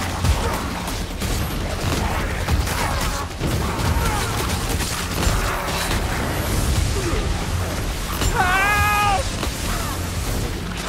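Creatures snarl and squeal in a frantic melee.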